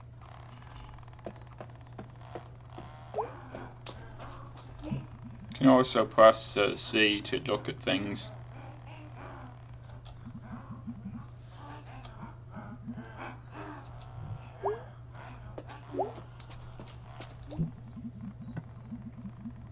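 Soft footsteps patter across a hard floor.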